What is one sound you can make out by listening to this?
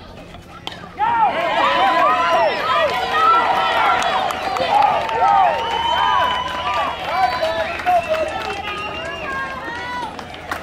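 A crowd of young players and adults cheers and shouts loudly outdoors.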